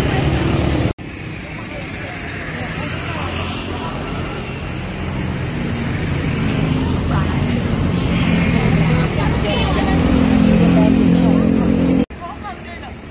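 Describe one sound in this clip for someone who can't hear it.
Boys talk and chatter nearby.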